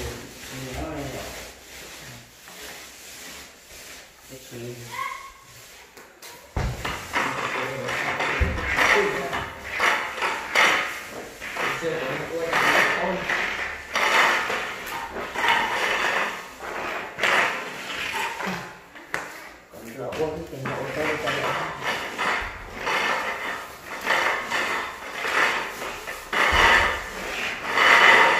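Paint rollers on long poles swish and roll across walls.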